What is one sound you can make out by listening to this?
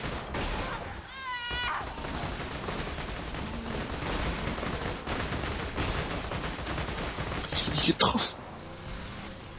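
A gun fires rapid shots.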